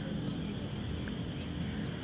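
A cricket bat knocks a ball.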